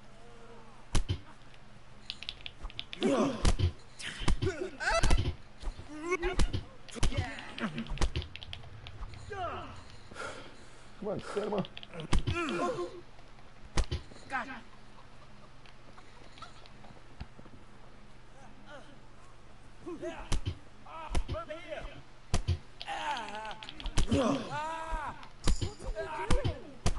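Fists land with dull thumps as men brawl.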